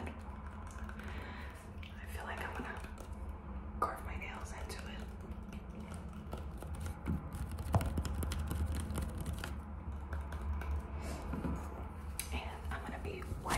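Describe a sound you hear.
A young woman whispers softly close to a microphone.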